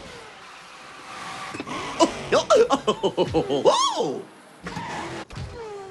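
Tyres skid and screech on a track.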